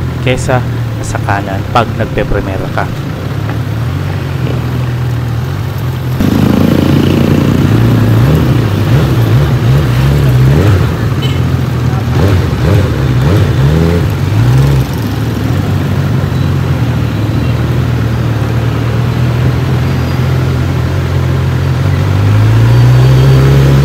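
A motorcycle engine idles and revs up close.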